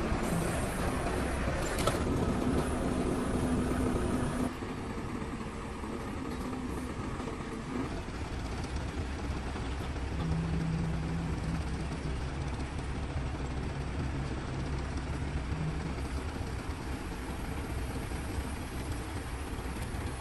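A truck crane's engine runs with a steady low hum.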